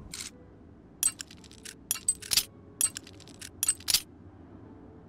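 A lock pick clicks and taps inside a lock.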